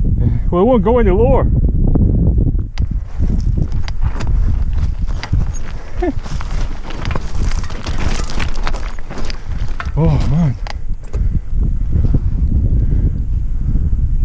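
A bicycle rattles and clatters over rough ground.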